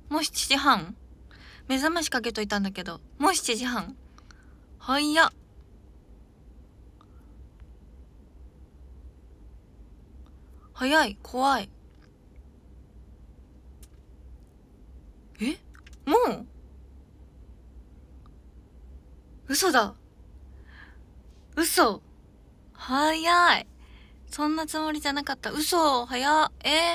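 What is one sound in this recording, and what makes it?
A young woman speaks close to a microphone in short bursts, with long pauses.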